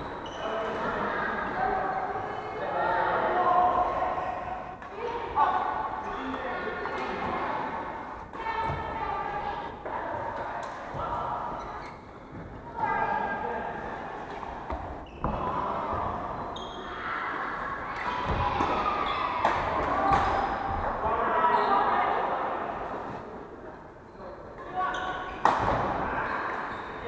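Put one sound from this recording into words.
Badminton rackets hit a shuttlecock with sharp pops in a large echoing hall.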